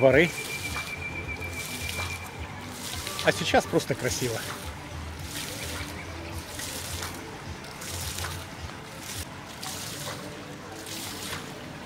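Small fountain jets splash softly onto pavement outdoors.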